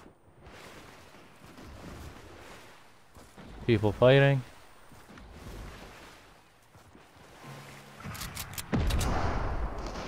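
Water splashes as someone swims and then climbs out.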